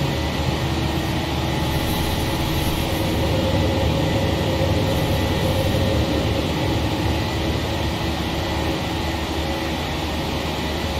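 Jet engines roar steadily as an airliner climbs.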